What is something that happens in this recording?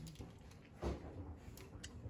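Paper crinkles as it is handled.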